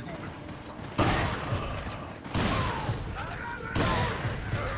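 A shotgun fires several loud blasts.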